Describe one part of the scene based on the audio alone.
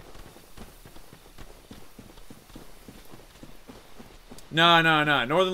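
Footsteps crunch softly on a forest floor.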